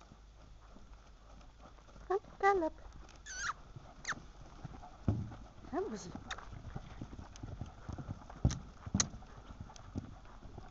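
Horses' hooves thud on soft sand as they canter.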